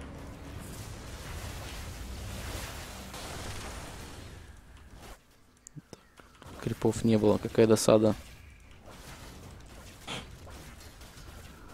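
Magic spells crackle and blast during a fight.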